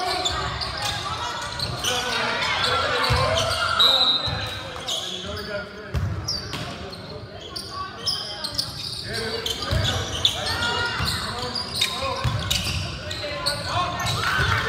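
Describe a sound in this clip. A crowd of spectators murmurs and shouts in an echoing gym.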